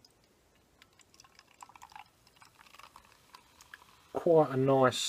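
Beer pours and fizzes into a glass.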